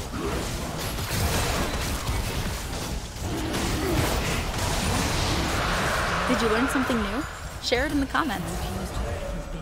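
Magic spells crackle and burst in a fierce fight.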